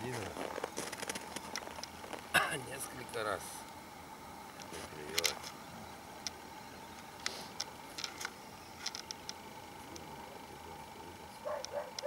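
A small fishing reel clicks in short bursts.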